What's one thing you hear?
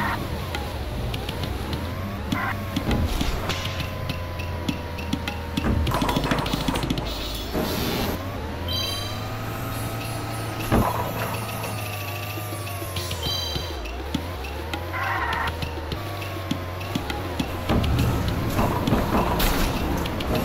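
A toy kart engine hums and whines steadily.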